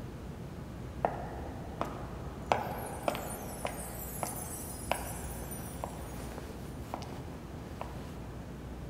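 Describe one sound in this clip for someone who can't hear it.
Footsteps click steadily on a hard floor, coming closer.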